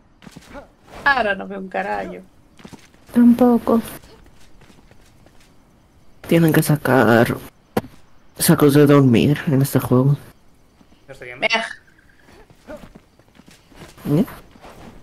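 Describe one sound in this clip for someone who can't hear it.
A young woman talks with animation into a close microphone, in short bursts.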